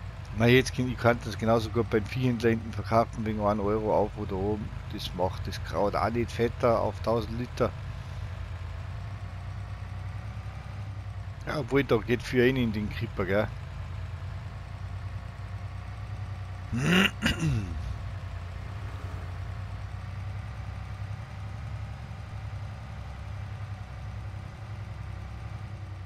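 A truck engine hums low and steady as the truck drives along.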